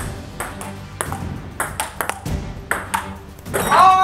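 A ping pong ball clicks back and forth on a table and paddles.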